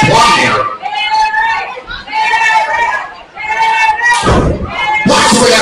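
A crowd chants and cheers loudly in an echoing hall.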